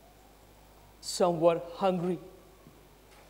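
An older man speaks dramatically through a microphone.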